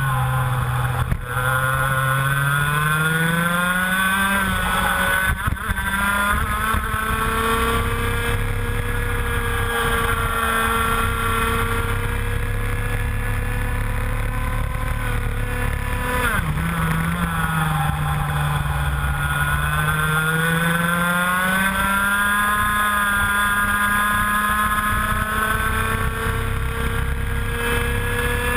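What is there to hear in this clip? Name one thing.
A kart engine buzzes loudly up close, its pitch rising and falling as the kart speeds up and slows for bends.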